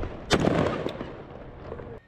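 A rifle fires a loud burst close by.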